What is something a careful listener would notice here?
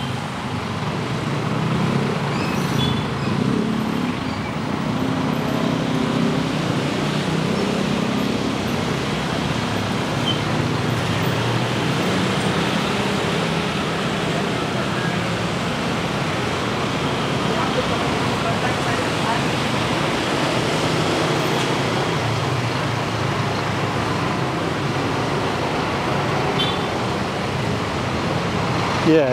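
Car traffic rumbles past on a wet road.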